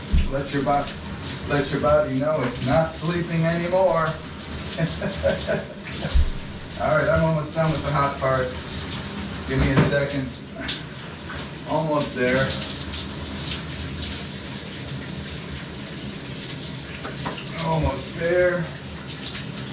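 A person speaks nearby in short bursts.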